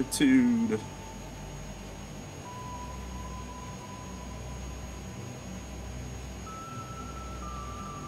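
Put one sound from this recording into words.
A jet's auxiliary engine hums low and steady.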